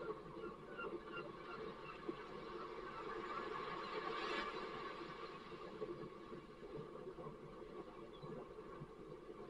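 Small waves wash onto the shore and break in the shallows.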